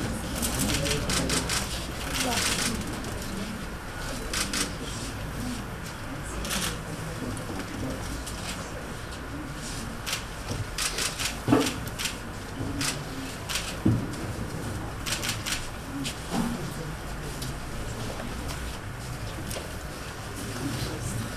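A crowd murmurs nearby in a busy room.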